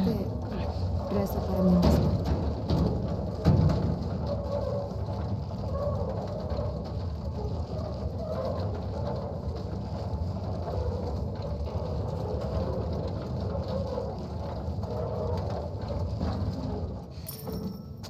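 A heavy loaded cart rolls and rumbles across a hard floor.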